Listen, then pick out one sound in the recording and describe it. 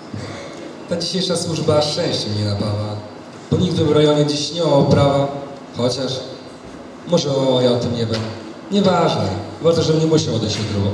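A woman speaks calmly into a microphone, heard through loudspeakers in an echoing hall.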